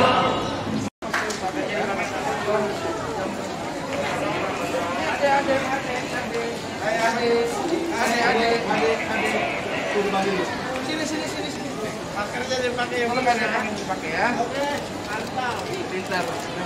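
A man speaks firmly, close by, over a crowd.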